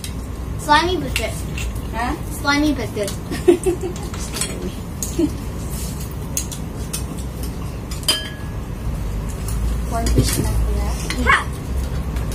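Children talk and squeal nearby.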